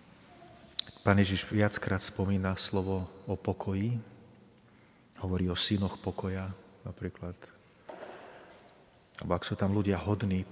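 A man reads out calmly through a microphone in an echoing hall.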